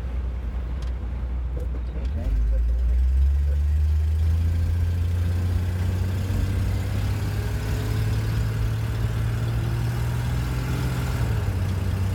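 A car engine idles, then revs up and drones steadily as the car pulls away.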